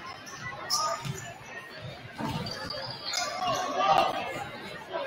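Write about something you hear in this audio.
A basketball bounces on a hardwood floor in a large echoing gym.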